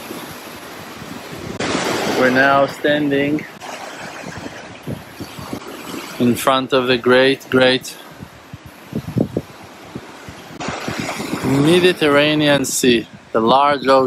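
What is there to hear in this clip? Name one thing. Waves wash up onto the shore and break in a steady rush.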